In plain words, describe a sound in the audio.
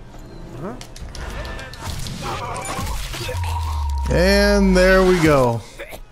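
A scuffle breaks out with heavy blows.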